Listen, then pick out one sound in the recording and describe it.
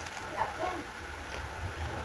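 A woman crunches on a crisp cucumber slice.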